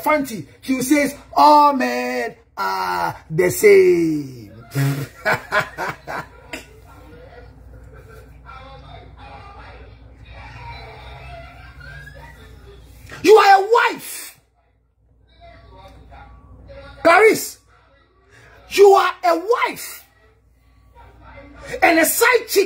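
A man sings and speaks with animation close to a microphone.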